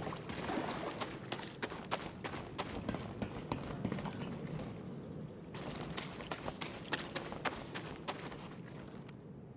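Footsteps thud quickly on grass and stone.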